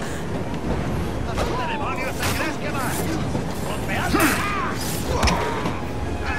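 Blows land in a brief scuffle.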